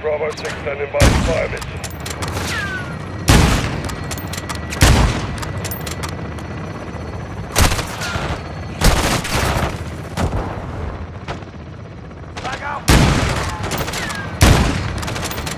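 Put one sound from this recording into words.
A rifle fires loud, echoing shots.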